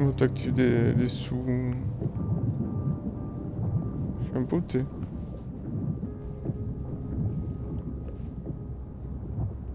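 A deep underwater rumble murmurs steadily.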